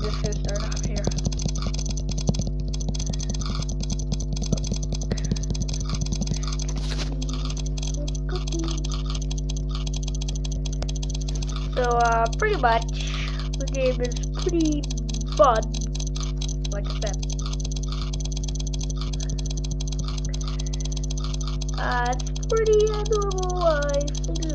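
Game clicks and chimes sound rapidly as cookies are tapped.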